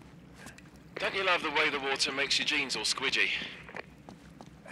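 A young man speaks playfully, close by.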